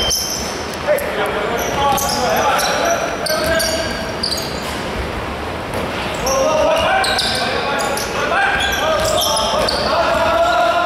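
Young men shout to each other during play.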